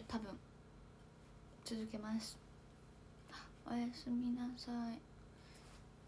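A young woman speaks softly and playfully, close to a microphone.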